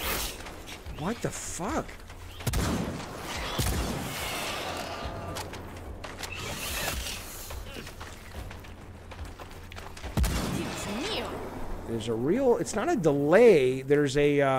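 A creature shrieks.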